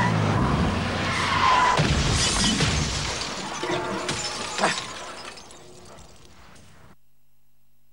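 Rain beats against a car window.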